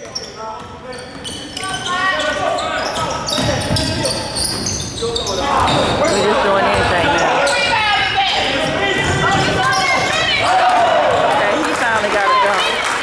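Sneakers squeak on a hard court in a large echoing gym.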